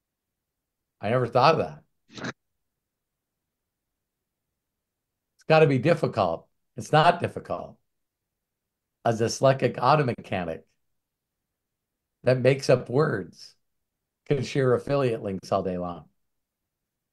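A middle-aged man talks calmly in short phrases, heard through an online call.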